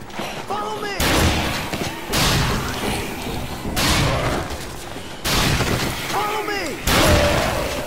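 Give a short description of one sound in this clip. Heavy blows land in quick succession.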